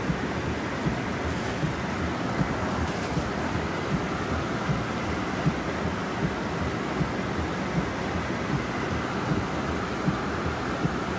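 A windscreen wiper thumps back and forth in a steady rhythm.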